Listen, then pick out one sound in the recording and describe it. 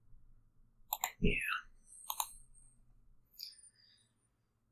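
Digital card game sound effects chime and swish as cards are played.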